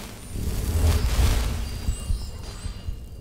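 A magic spell bursts with a loud rushing roar.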